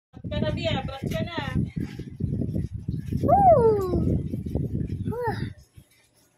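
A young child talks with animation close to the microphone.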